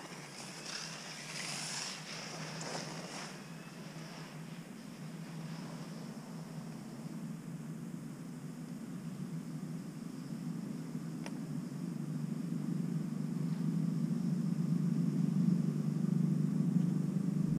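Cable car machinery hums low and steadily.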